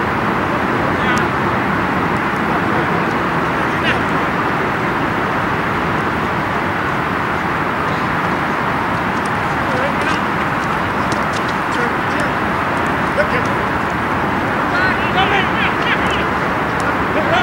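Men shout to each other far off across an open field.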